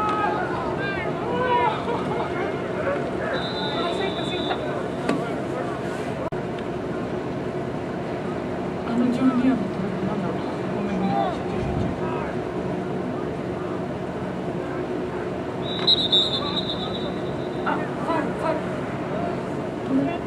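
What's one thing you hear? A crowd of young people shouts and cheers far off across an open field.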